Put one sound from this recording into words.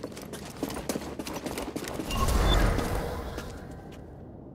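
Footsteps run quickly over wooden boards.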